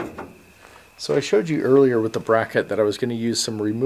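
An aluminium ladder clanks and rings against metal.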